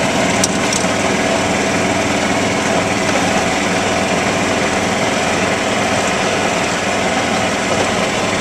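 Rain beats steadily against a window.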